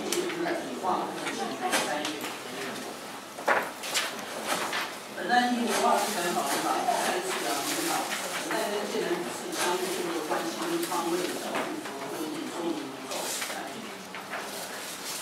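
A man speaks steadily through a microphone and loudspeaker.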